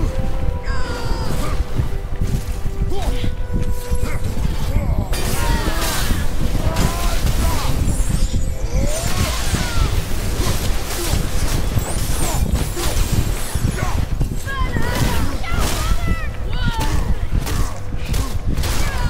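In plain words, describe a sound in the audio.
Heavy blades clang and strike in a fast, loud fight.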